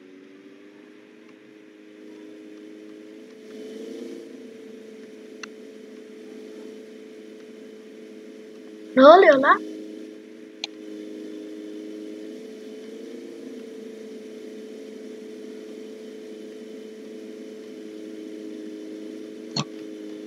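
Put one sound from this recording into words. A vehicle engine hums steadily as it drives along.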